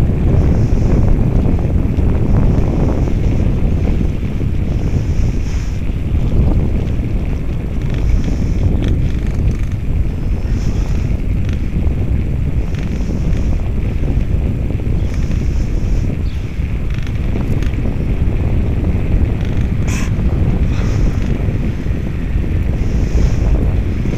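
Wind rumbles loudly and steadily past a bicycle riding outdoors.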